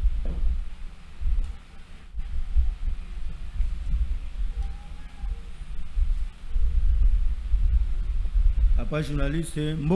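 Hands knock softly on a table close to a microphone.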